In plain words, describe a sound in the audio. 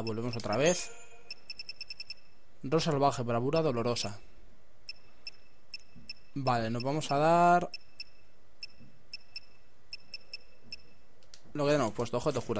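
Short electronic beeps tick quickly, one after another, as a menu is scrolled.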